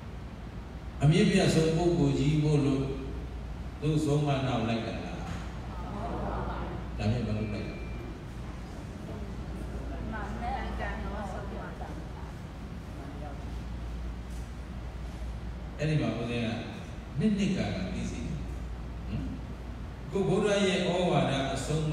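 A man speaks calmly and slowly through a microphone in an echoing hall.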